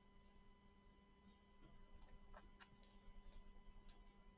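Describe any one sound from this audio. Gloved hands handle a trading card with soft rustles and taps.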